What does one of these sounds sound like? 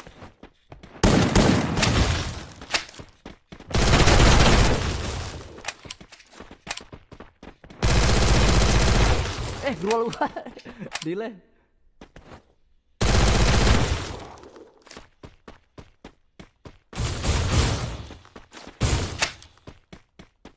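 Video game gunfire crackles in loud bursts.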